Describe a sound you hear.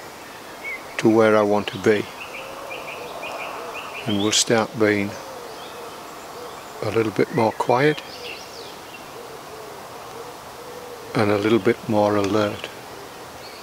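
A middle-aged man speaks calmly and close by, in short phrases with pauses, outdoors.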